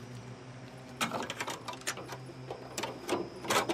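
Metal clanks and rattles as a car is searched.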